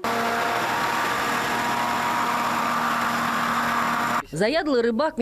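A hovercraft engine roars steadily.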